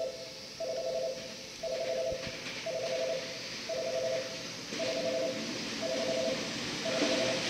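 A train approaches with a rising rumble and rattle.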